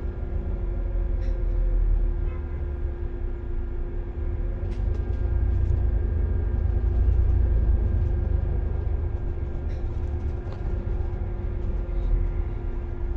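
A vehicle engine hums steadily from inside, moving slowly in traffic.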